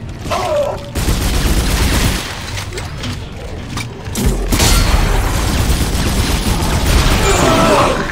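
A futuristic gun fires in loud, booming bursts.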